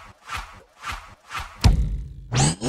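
A sword whooshes through the air several times.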